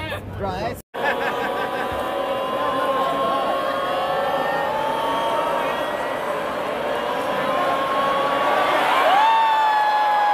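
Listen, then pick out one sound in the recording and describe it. A large crowd sings together loudly in an open stadium.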